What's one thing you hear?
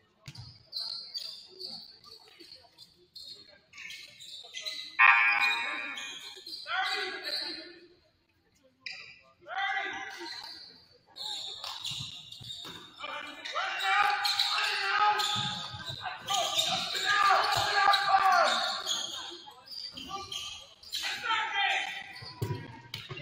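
Young players shout to one another in an echoing gym.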